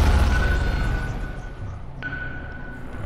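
A submarine engine rumbles deep underwater.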